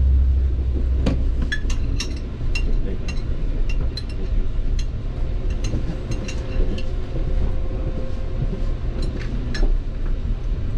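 A train's wheels click and rattle over rail joints.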